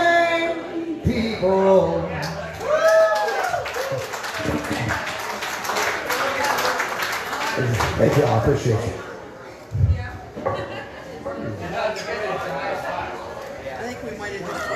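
An elderly man talks with animation into a microphone through loudspeakers.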